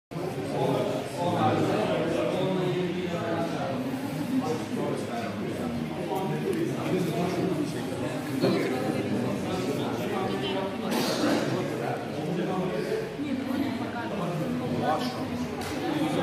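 Several people chat quietly in the background of a large echoing room.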